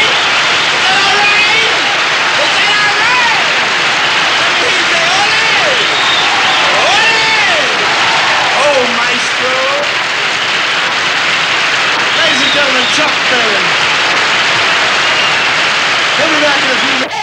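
A crowd cheers and applauds loudly throughout.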